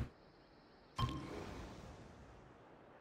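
A soft whoosh rises in a game and slowly fades.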